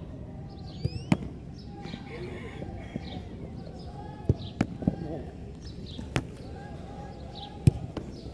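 A football thumps when kicked and caught.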